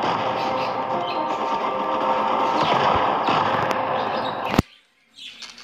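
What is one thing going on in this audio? A tank explodes with a loud roaring blast.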